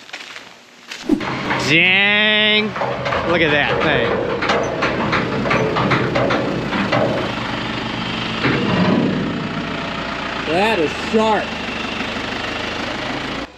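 A diesel engine rumbles steadily nearby.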